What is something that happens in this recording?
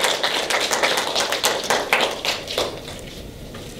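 A small audience claps and applauds.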